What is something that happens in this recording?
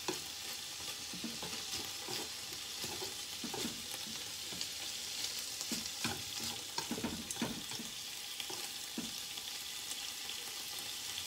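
Meat sizzles steadily in a hot frying pan.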